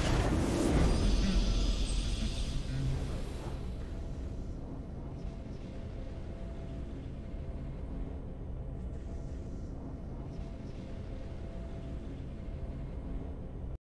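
A soft orchestral victory theme plays in a video game.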